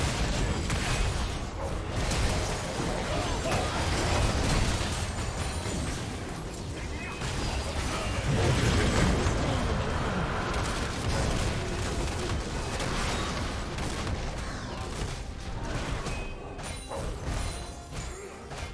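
Sharp hits and blasts land again and again.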